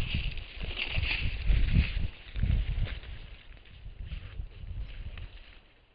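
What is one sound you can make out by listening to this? Footsteps crunch through dry brush and leaves.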